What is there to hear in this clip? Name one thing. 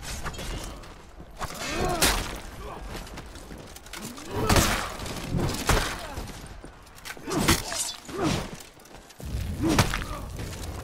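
Swords clash and clang against armour.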